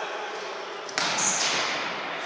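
A ball is kicked with a hard thump.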